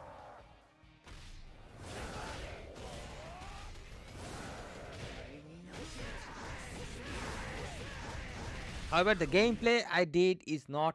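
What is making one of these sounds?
Video game battle effects whoosh and clash with music.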